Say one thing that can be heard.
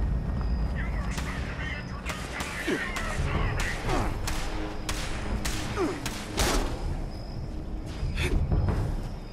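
Laser guns fire in quick bursts of sharp zaps.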